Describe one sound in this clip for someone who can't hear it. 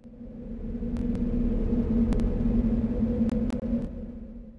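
Short video game sound effects chime.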